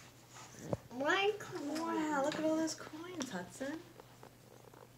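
A young child talks excitedly in a high voice close by.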